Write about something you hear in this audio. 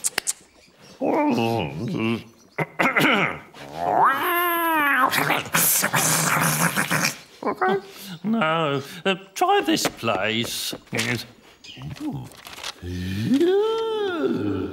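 A man mumbles and grumbles with animation.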